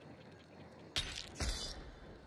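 Two gunshots crack close by, one right after the other.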